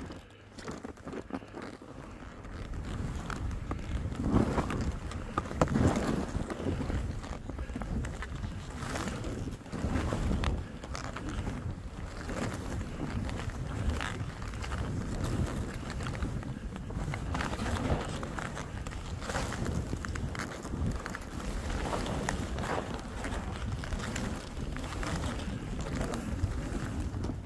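Wind rushes past steadily outdoors.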